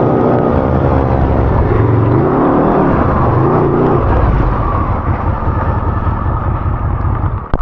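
A small engine roars loudly up close, revving up and down.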